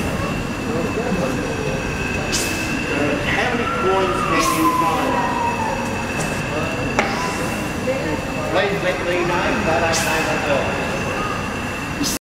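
A large steam engine runs steadily, clanking and hissing.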